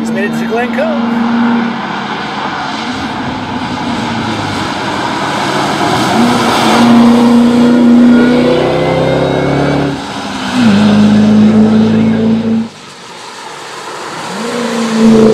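A supercharged V8 racing car accelerates hard at full throttle, shifting gears.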